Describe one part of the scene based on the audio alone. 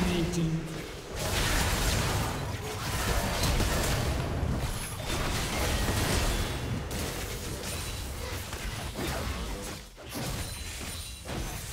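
Game combat effects clash and burst in quick succession.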